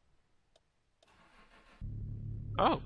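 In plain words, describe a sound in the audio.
A car engine cranks and starts.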